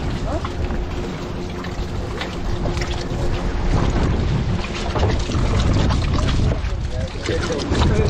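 Nylon netting rustles and swishes as hands pull it.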